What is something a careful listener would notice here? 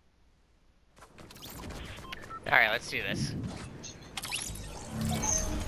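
Electronic game sounds chime and whoosh loudly.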